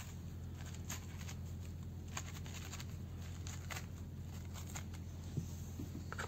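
A knife scores the skin of a pomegranate with faint scraping.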